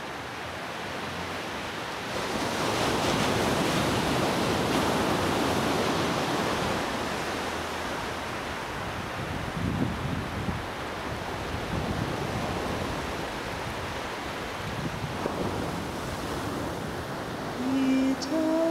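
Small ocean waves break and wash up onto a sandy beach.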